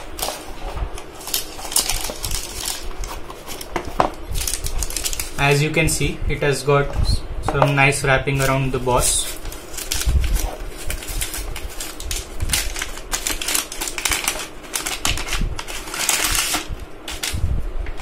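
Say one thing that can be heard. Paper crinkles and rustles as it is unwrapped.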